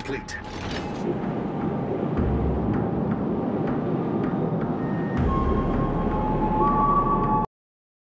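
Water rushes and splashes along a ship's hull.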